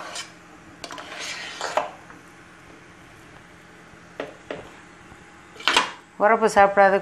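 A spatula scrapes and stirs rice in a metal pot.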